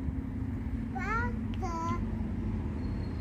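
A young child babbles briefly nearby.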